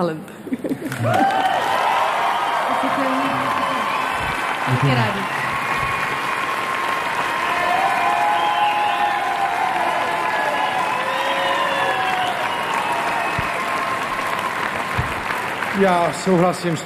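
A large crowd cheers and whistles in a big echoing hall.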